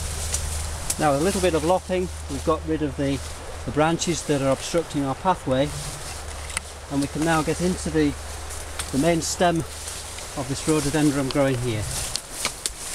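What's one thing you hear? A middle-aged man speaks calmly close by.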